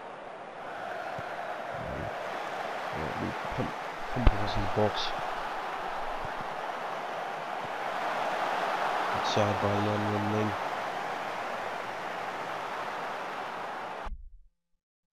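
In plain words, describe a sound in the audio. A large stadium crowd roars and murmurs steadily, swelling now and then.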